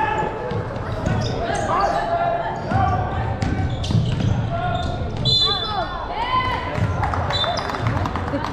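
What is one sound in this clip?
Basketball shoes squeak sharply on a hard court in a large echoing hall.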